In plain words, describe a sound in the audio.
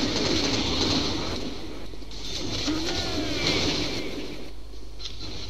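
A large explosion roars in a video game.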